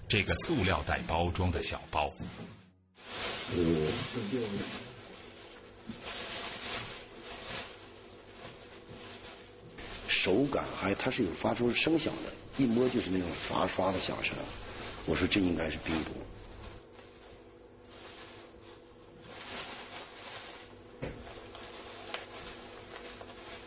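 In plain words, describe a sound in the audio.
Hands rustle and crinkle a plastic bag.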